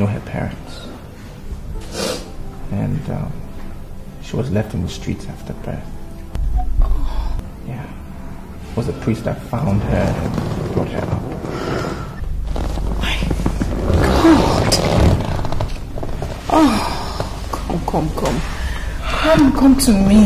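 An elderly man speaks.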